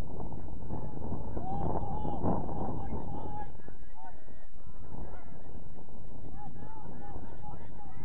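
Young men shout to each other in the distance.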